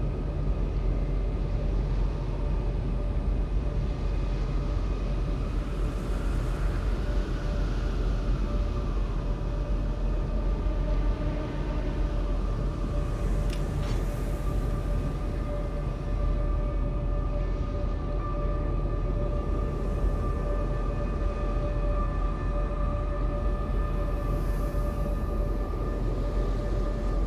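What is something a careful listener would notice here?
A large ship's engine rumbles low and steady.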